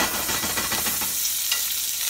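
A metal spoon scrapes against a pan.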